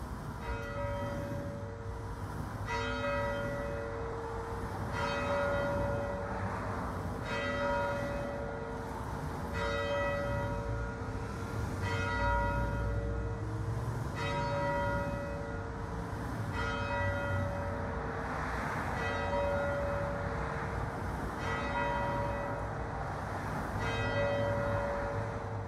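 A large church bell rings out in slow, even strokes, each one ringing on.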